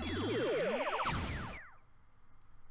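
A bright game jingle rings out with a rising sweep.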